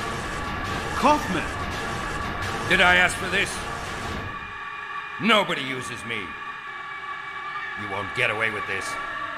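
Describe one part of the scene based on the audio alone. A young man speaks into a headset microphone.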